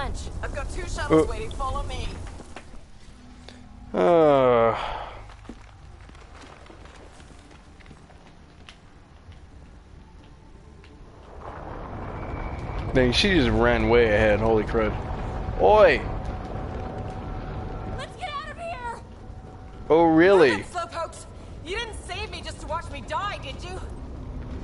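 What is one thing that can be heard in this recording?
Footsteps crunch quickly on rocky ground.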